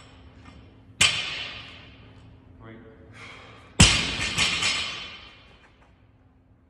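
A loaded barbell drops onto the floor with a loud bang and the plates rattle.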